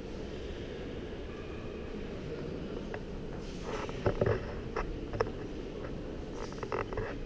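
Footsteps echo softly across a large hall.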